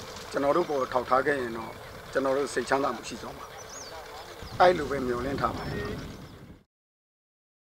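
A man speaks earnestly into a nearby microphone.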